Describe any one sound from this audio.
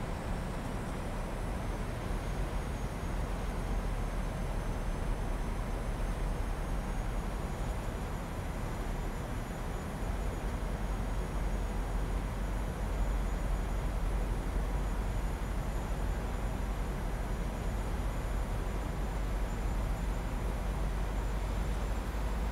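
Jet engines hum steadily with a constant roar of rushing air.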